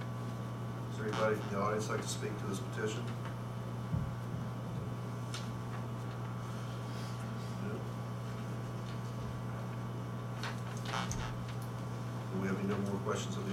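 A man speaks calmly into a microphone, heard through loudspeakers.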